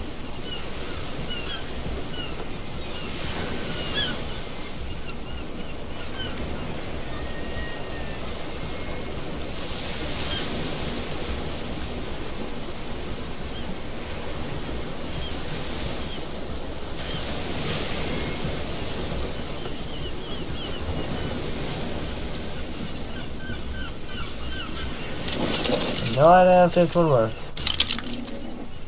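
Water laps gently against a wooden raft.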